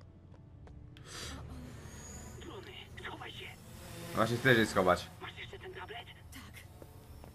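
Drones hum and whir overhead.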